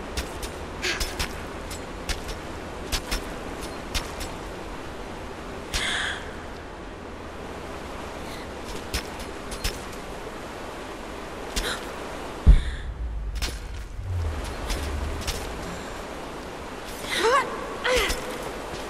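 A climber's hands and boots tap and scrape on rock.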